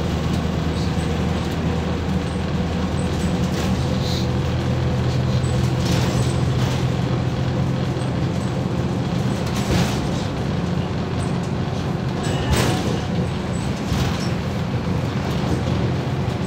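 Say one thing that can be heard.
A bus engine hums and drones steadily.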